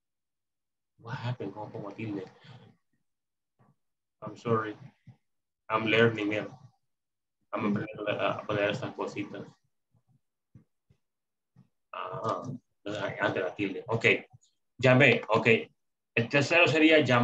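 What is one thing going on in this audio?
A young man speaks calmly and clearly into a microphone, in bursts with pauses.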